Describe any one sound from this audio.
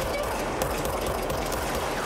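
A pistol fires in rapid shots.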